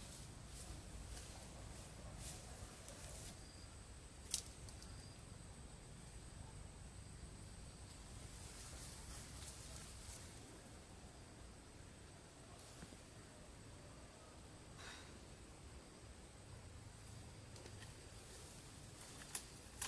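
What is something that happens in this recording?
Leaves rustle as branches are pulled by hand.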